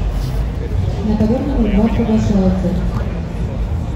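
A man shouts instructions nearby.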